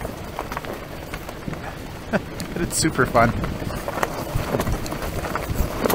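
Tyres roll and crunch over loose gravel.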